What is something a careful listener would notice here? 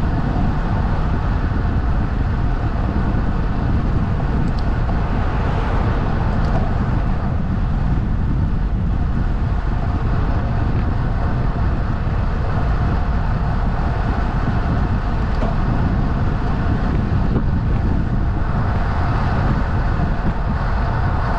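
Wind rushes loudly past, as when cycling at speed outdoors.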